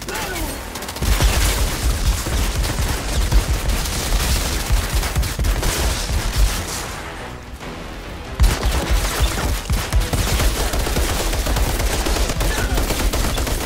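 Rapid gunfire rattles in heavy bursts.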